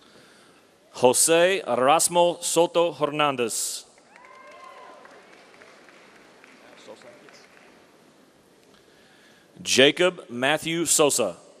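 A man announces names clearly through a loudspeaker in a large echoing hall.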